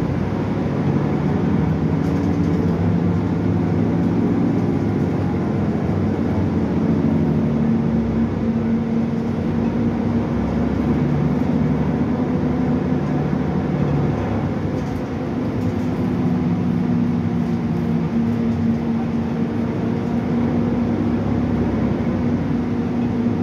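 A bus interior rattles and creaks over the road.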